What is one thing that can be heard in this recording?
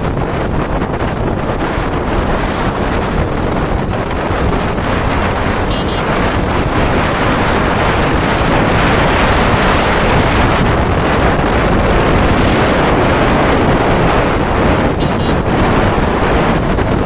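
Strong wind roars steadily past a moving motorcycle.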